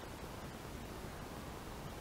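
Cloth squares rustle softly as hands handle them.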